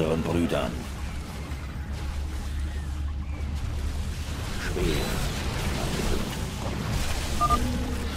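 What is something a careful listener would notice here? Game units clash in battle with zaps and blasts.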